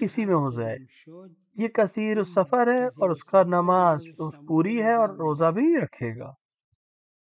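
A man chants melodically through a microphone.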